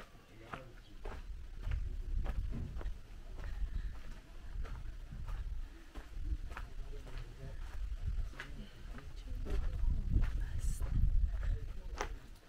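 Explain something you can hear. Footsteps crunch steadily on a dirt path.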